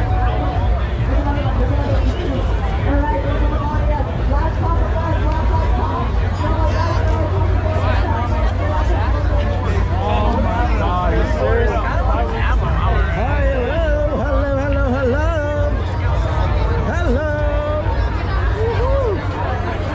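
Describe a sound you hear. A large crowd of men and women chatter all around outdoors.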